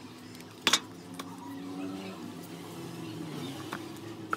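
A bar of soap rubs against a plastic cup.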